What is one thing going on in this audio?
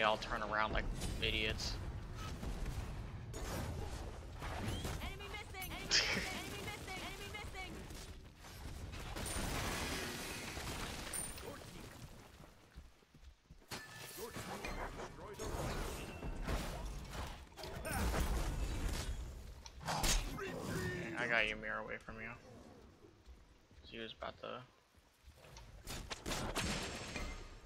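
Game weapons clash and magic effects whoosh in combat.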